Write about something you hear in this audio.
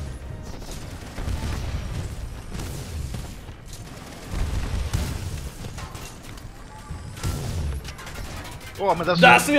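Gunfire and explosions boom from a video game.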